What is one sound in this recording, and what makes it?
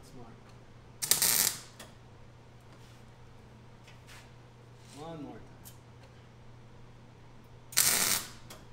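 A welder crackles and sizzles in short bursts.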